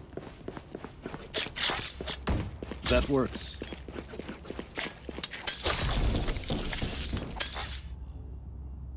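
Loud video game effects whoosh and crackle.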